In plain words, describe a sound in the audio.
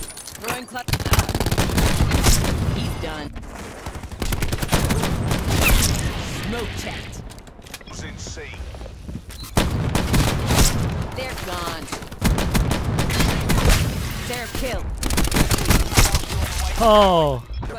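An assault rifle fires in bursts.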